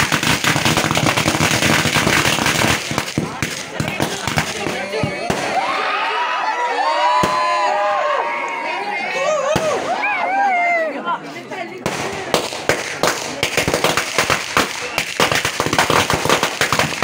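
Fireworks bang in the sky.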